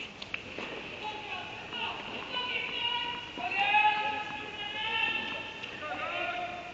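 Young women call out to each other in a large echoing hall.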